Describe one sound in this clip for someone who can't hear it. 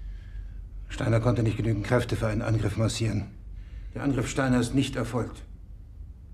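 A man speaks in a low, steady voice.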